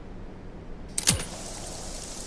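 A toy gun fires with a sharp blast.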